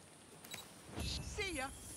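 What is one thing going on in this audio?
A bright magical chime shimmers and sparkles.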